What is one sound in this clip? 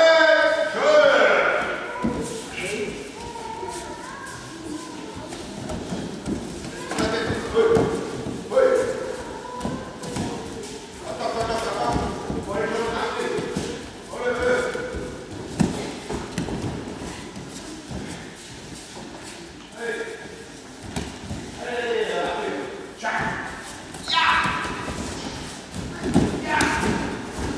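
Bare feet thud and shuffle on padded mats.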